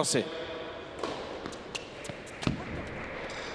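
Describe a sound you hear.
A tennis ball is hit back and forth with sharp pops.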